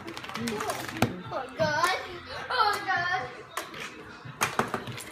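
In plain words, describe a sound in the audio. A plastic game toy clicks as it is cranked.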